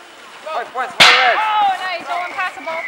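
A ball strikes a metal gong with a loud clang.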